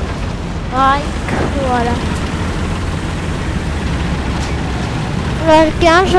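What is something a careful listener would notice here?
A tank engine rumbles steadily.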